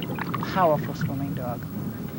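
Water bubbles and gurgles around a swimmer underwater.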